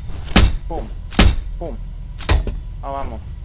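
Loud gunshots ring out one at a time.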